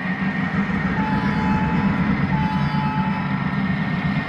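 A locomotive horn sounds twice.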